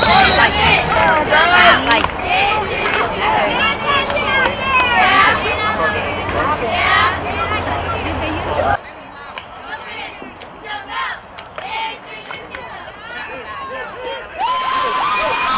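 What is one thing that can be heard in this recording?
Young players call out to each other on the field.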